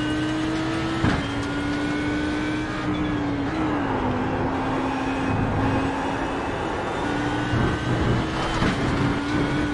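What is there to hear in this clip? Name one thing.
A gearbox clunks sharply as gears shift.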